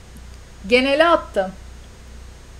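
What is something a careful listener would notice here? A young woman speaks briefly and with animation into a close microphone.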